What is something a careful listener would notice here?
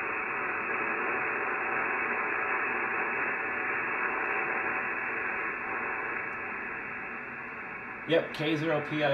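Static hisses steadily from a radio receiver.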